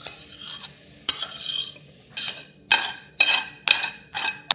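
A metal spoon scrapes food from a pan into a bowl.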